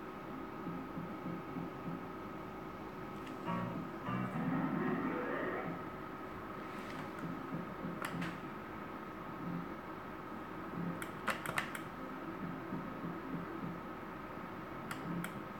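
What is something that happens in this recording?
A slot machine plays electronic jingles and tones.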